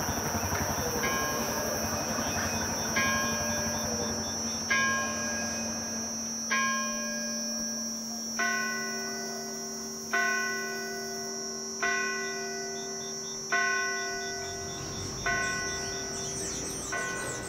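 A church bell tolls slowly and rings out.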